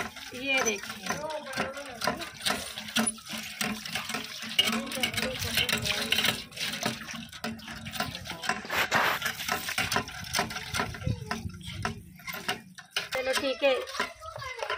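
Water splashes from a hand pump into a metal pan.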